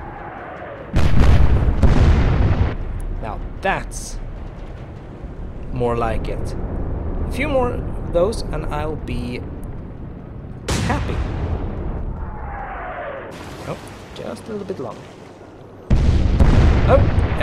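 A loud explosion booms and rumbles over the sea.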